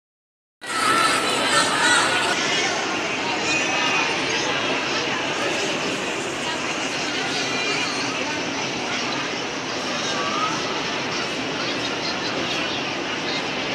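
Pop music plays loudly over loudspeakers in a large echoing hall.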